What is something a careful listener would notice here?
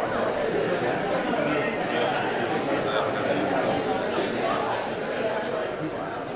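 Several singers sing together into microphones.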